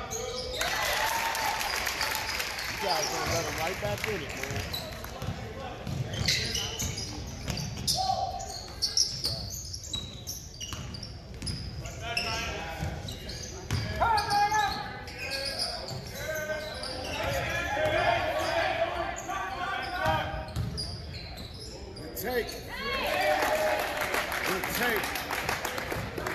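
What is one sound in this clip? Young men shout and call out during play.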